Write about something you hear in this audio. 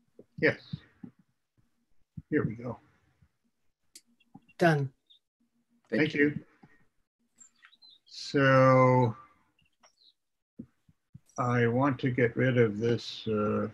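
An elderly man speaks calmly over an online call, in short bursts with pauses.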